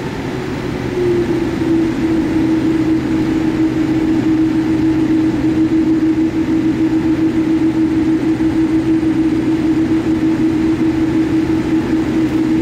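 The engine whine steps up in pitch and grows louder as the airliner speeds up.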